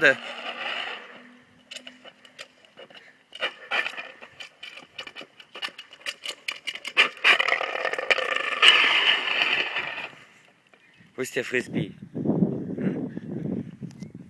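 A dog pushes a plastic frisbee that scrapes and clatters on paving stones.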